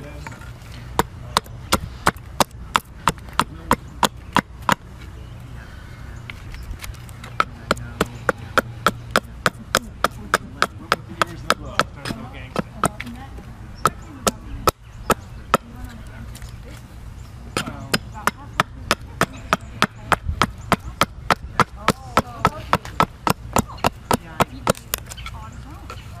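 An axe chops rapidly at wood with sharp, steady knocks.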